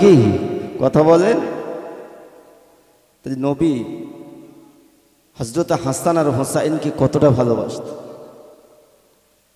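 A man preaches loudly and with passion into a microphone, his voice echoing through loudspeakers.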